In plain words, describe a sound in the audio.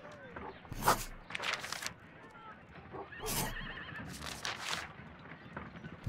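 Paper pages rustle briefly as they are turned.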